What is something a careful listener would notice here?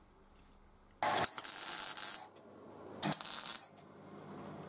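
A welder crackles and hisses in short bursts.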